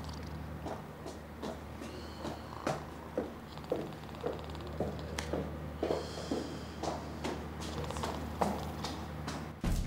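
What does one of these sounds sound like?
A woman's high heels click on stone steps.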